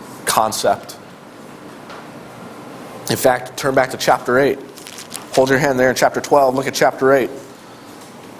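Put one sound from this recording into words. A middle-aged man speaks loudly and with emphasis.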